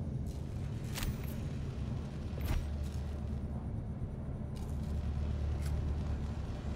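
Short electronic clicks sound as game menus change.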